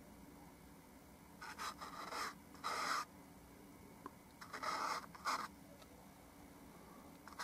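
A paintbrush dabs and scrapes softly on canvas.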